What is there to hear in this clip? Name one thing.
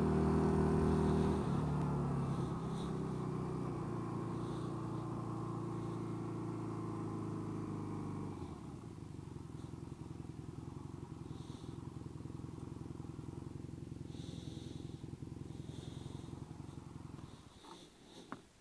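A motorcycle engine rumbles steadily, then slows to a low idle.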